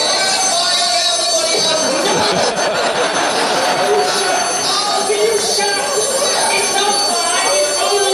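A man shouts excitedly in a high voice.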